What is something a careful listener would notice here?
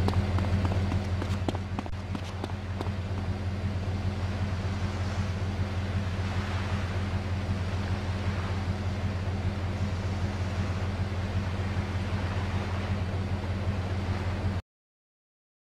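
A truck engine idles with a low, steady hum.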